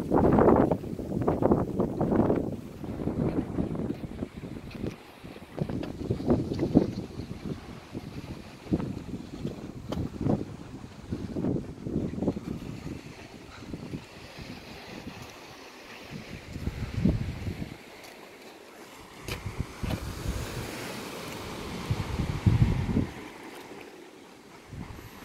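Wind gusts outdoors, buffeting against the microphone.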